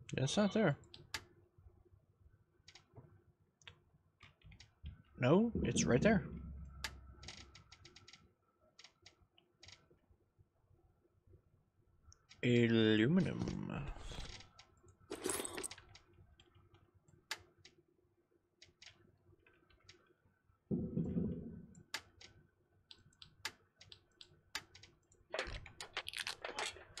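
Short soft clicks tick now and then as menu items are picked.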